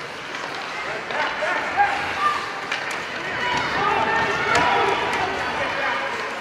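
A crowd of spectators cheers and shouts in a large echoing rink.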